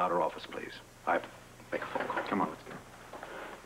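A middle-aged man speaks firmly up close.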